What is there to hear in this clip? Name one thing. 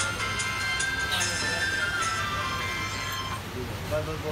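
A phone plays a short startup chime.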